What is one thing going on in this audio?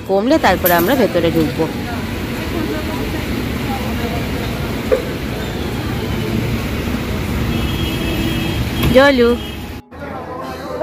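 Steady street noise hums outdoors.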